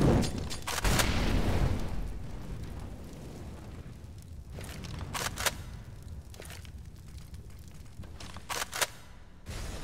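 A rifle's magazine clicks and clacks as it is reloaded.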